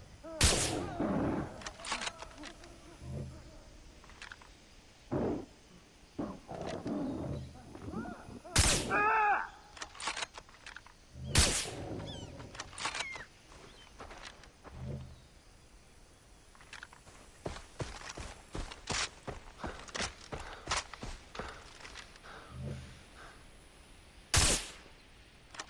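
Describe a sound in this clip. A rifle fires loud sharp shots.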